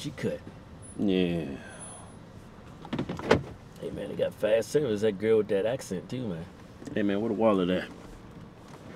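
A second man answers calmly, close by.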